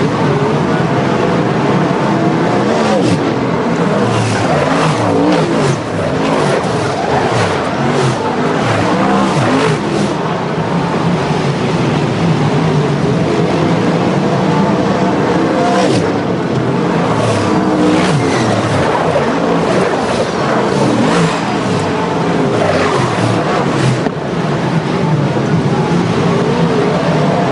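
Race car engines roar loudly and whine past up close, outdoors.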